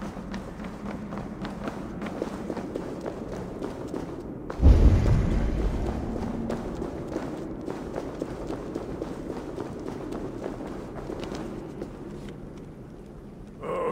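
Footsteps crunch over rocky ground.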